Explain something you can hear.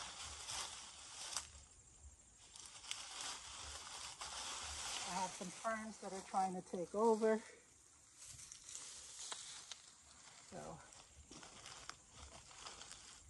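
Dry plant stems rustle and crackle as they are pulled.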